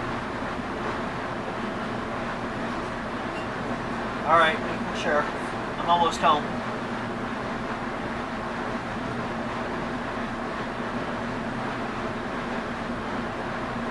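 A vehicle's engine hums steadily from inside the cabin.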